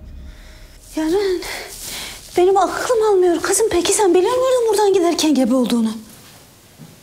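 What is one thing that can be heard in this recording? A woman speaks with emotion, close by.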